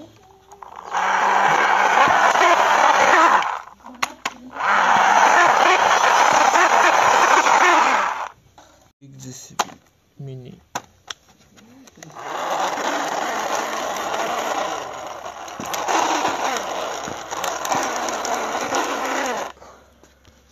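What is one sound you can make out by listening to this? Plastic toy tracks rattle and grind over rough concrete.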